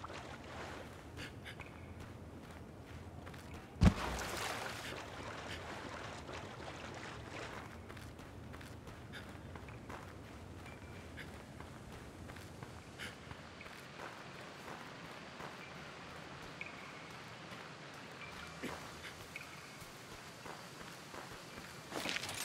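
Footsteps patter quickly over rock.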